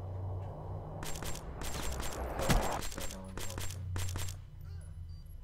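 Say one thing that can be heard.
An automatic rifle fires in rapid shots.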